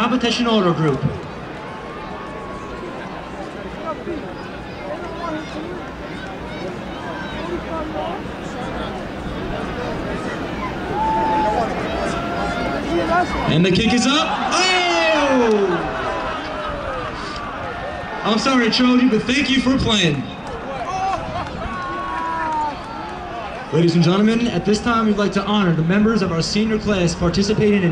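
A large crowd chatters and cheers in an open stadium.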